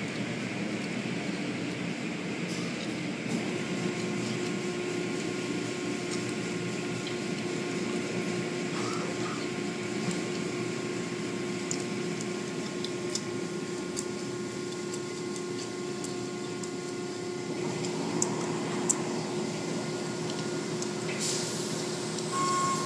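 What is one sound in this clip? A car wash machine hums steadily.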